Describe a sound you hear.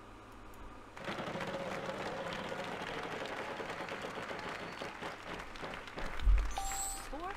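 A prize wheel spins with rapid clicking that slows down.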